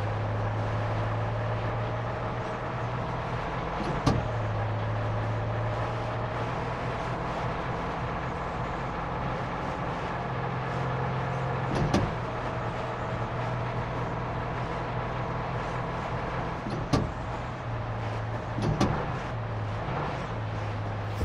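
A car engine hums steadily from inside the cab.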